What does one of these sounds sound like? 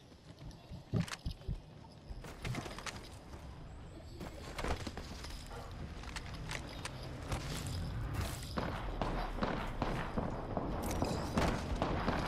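A gun fires in short bursts of sharp shots.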